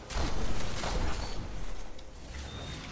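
Laser gunfire crackles in rapid bursts.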